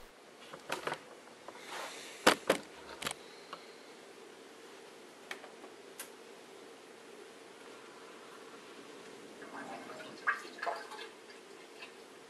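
A dishwasher hums steadily.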